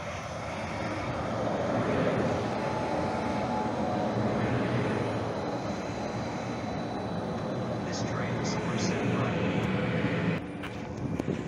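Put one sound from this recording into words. A light rail train rolls past close by with a loud rumble.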